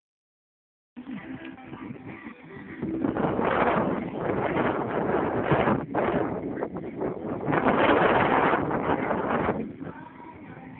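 Strong wind gusts and roars across the microphone outdoors.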